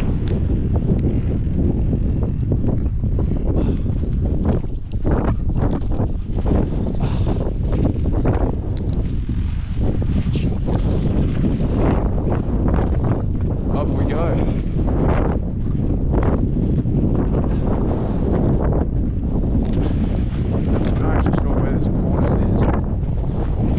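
Strong wind rumbles loudly outdoors.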